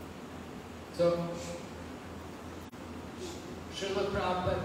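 An elderly man speaks slowly into a microphone, heard through a loudspeaker in an echoing hall.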